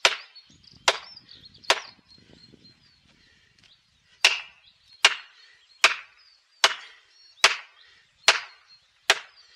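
A sledgehammer strikes a metal wedge with sharp, ringing clangs at a steady pace.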